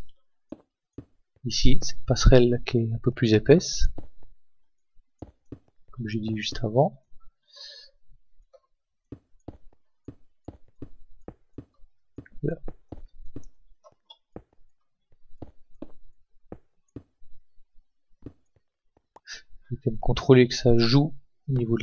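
Stone blocks are set down with soft, repeated thuds.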